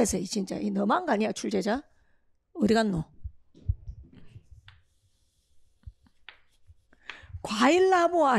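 A young woman lectures with animation through a microphone.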